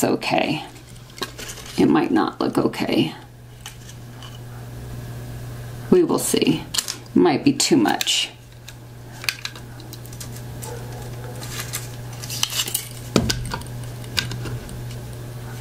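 A small metal tin clicks and taps as hands handle it.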